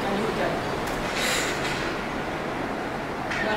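Two young women laugh together.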